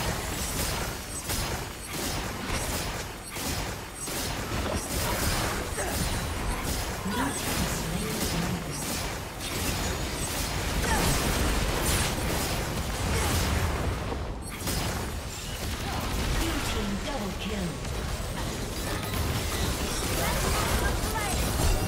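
Game sound effects of spells and weapon hits clash rapidly in a battle.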